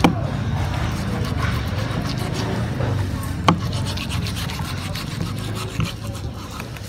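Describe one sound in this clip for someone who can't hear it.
A knife blade taps on a cutting board.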